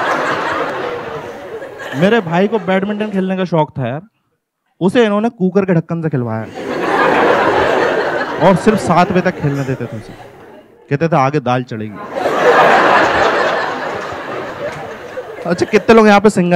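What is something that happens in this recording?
A crowd laughs loudly.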